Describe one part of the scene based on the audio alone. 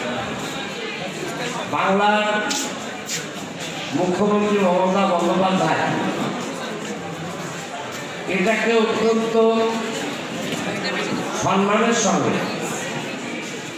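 A middle-aged man speaks with animation into a microphone over loudspeakers in an echoing hall.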